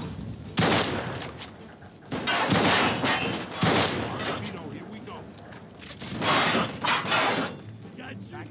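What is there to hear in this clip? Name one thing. Gunshots crack in rapid bursts with echoing reverb.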